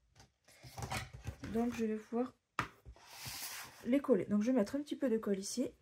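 Frame pieces clatter on a tabletop.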